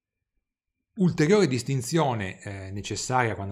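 A man speaks calmly into a close microphone.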